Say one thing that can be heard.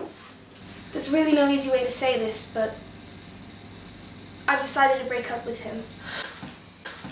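A young woman speaks nearby in a high, animated voice.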